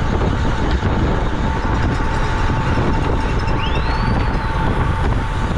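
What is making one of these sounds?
Wind rushes and buffets loudly outdoors while riding along at speed.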